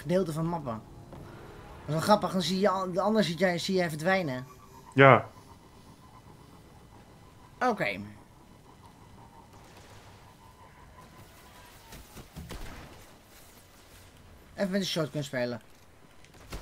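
A young man with a headset talks with animation into a close microphone.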